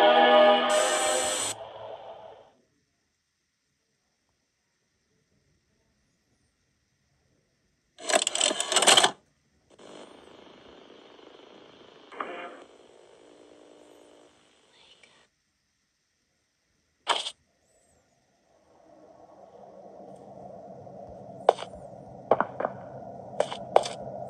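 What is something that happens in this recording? Eerie game sounds and music play from a tablet's small speaker.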